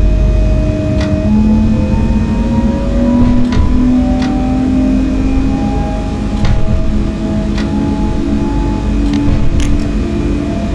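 Train wheels click over rail joints at intervals.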